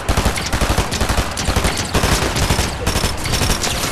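A submachine gun fires in a video game.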